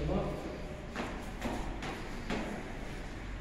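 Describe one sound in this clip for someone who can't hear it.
Footsteps echo on a hard floor in a large hall.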